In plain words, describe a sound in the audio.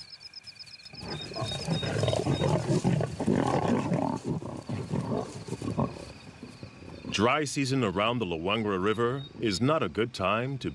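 Lions growl and snarl fiercely up close.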